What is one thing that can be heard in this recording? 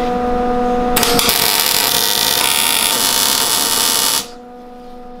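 An arc welder crackles and hisses loudly.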